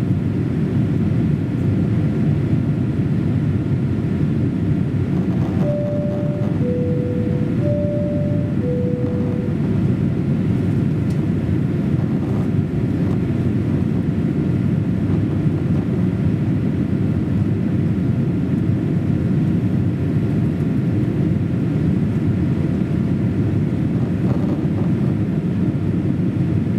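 A jet engine roars steadily from inside an airliner cabin.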